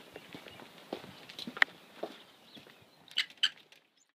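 A door latch clicks as a door opens.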